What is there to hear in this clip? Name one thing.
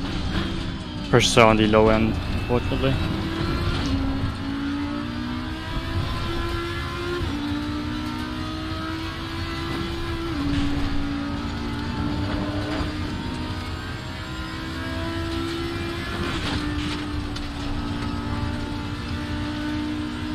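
A race car engine roars loudly, rising in pitch and dropping with each gear change.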